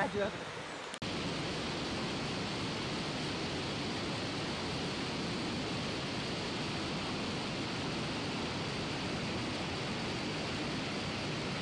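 A shallow stream rushes and splashes steadily over rocks.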